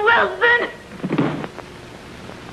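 Two people scuffle with a brief thud and rustle.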